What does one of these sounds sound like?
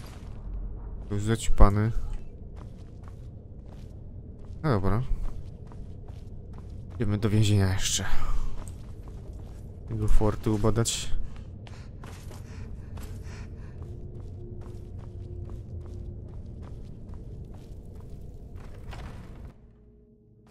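Footsteps scuff steadily on a stone floor.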